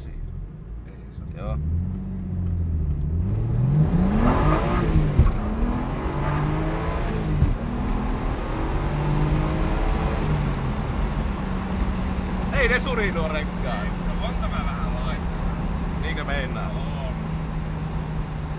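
Tyres rumble on a rough dirt road.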